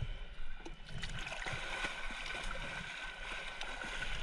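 Water splashes as a hand dips into it.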